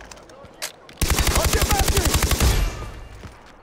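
A rifle fires rapid automatic bursts.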